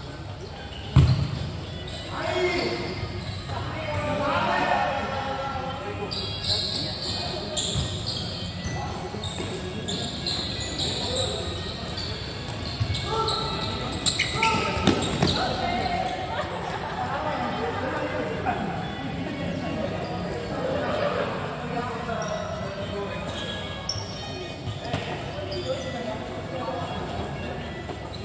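Young players shout and call out to each other across a large echoing court.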